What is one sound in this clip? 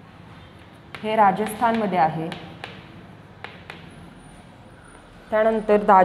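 A young woman speaks clearly nearby, as if teaching.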